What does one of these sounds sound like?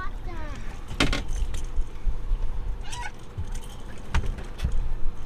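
A fish thumps against the side of a boat.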